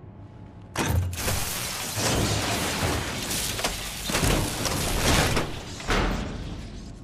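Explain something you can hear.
Metal grinds and scrapes harshly.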